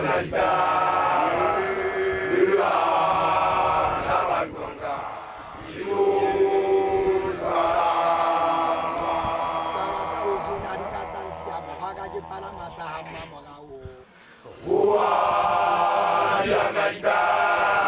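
A group of young men and women sing together loudly outdoors.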